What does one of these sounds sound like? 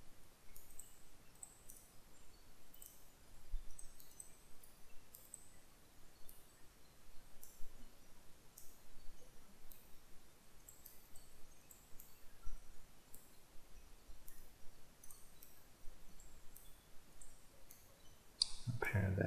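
Short, soft interface clicks sound again and again.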